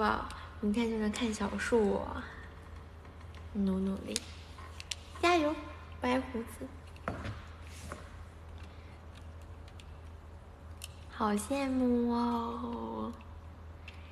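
A young woman speaks playfully and close up, in short bursts.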